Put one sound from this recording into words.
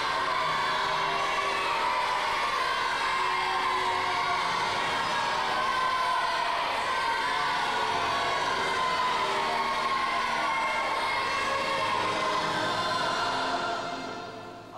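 Many voices sing together in a large echoing hall.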